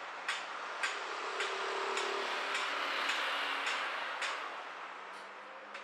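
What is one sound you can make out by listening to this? A motorcycle rides past with its engine humming.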